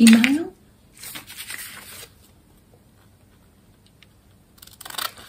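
Paper rustles as it is handled close by.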